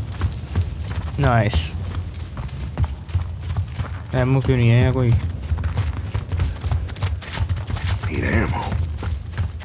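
Heavy boots thud on stone with each step.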